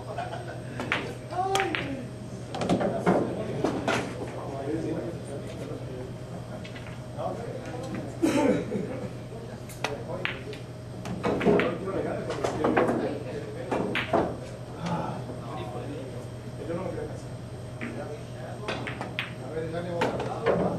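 A cue stick strikes a billiard ball with a sharp tap.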